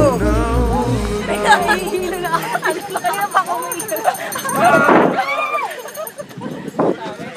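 Young men and women laugh and shout excitedly close by.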